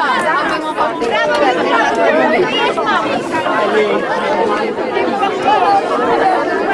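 A crowd of children and adults chatter outdoors.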